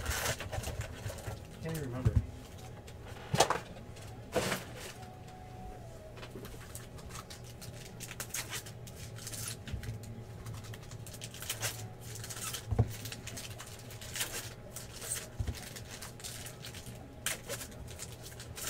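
Card packs clack and rustle as they are stacked.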